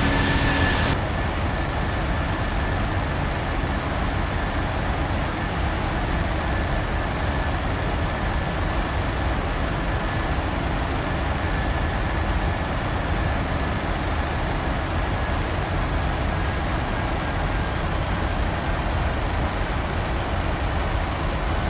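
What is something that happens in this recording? A steady low jet engine rumble and rushing air fill an airliner cockpit.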